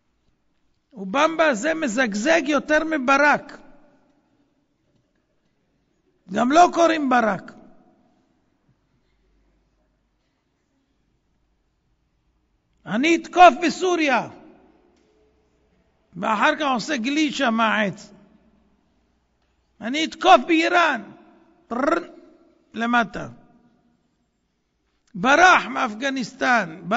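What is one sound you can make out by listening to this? A man speaks into a microphone in bursts with long pauses, heard through a loudspeaker.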